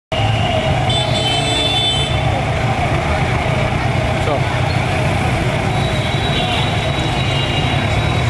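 Traffic rumbles along the street.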